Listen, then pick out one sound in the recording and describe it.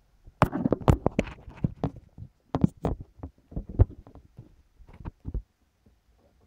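Knocks and bumps thud close to the microphone as it is handled.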